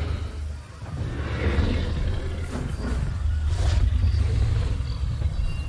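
A large creature growls with a deep, rumbling voice.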